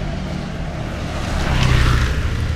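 A motor scooter passes close by with a rising buzz.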